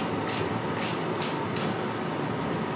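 A hairbrush swishes through long hair.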